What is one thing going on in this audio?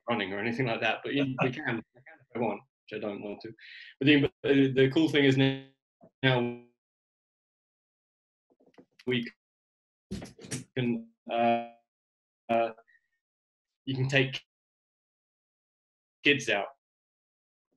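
A young man speaks calmly through a microphone, with pauses.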